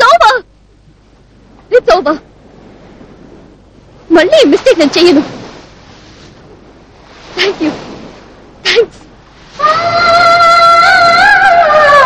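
Waves break on a shore.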